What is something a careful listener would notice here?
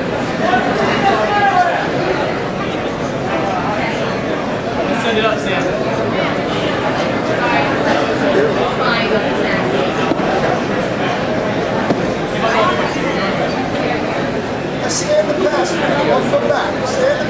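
A crowd of spectators talks and shouts throughout.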